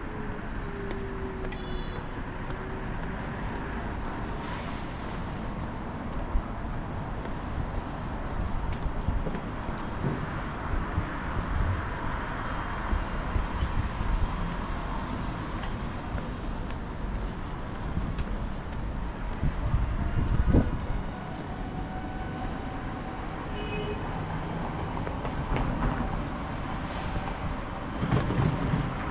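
Footsteps tap steadily along a paved sidewalk.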